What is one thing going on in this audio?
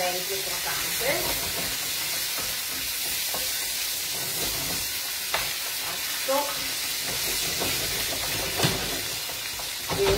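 A spatula scrapes and clinks against a frying pan.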